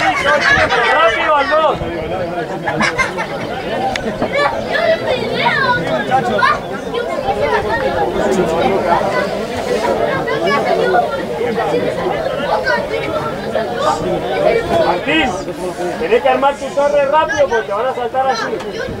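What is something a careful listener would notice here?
Players shout and call to each other outdoors across an open field.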